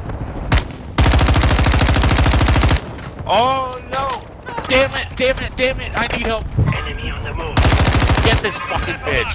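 A rapid-firing automatic rifle fires long bursts at close range.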